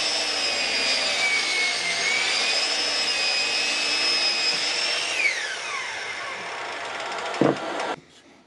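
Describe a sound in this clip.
A miter saw whines loudly as it cuts through wood, then winds down.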